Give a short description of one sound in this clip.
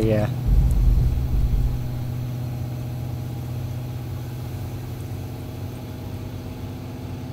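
A van engine hums steadily as it drives along a road.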